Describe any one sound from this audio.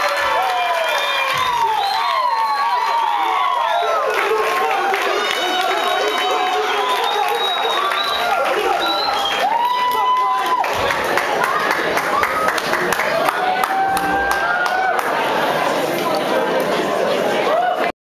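A large audience cheers and screams loudly in a big hall.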